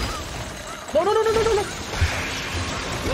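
Ice shatters with a loud crash.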